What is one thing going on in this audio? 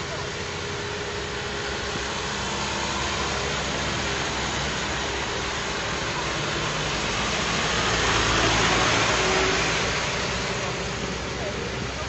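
Vehicles roll past on a wet road, tyres hissing on the water.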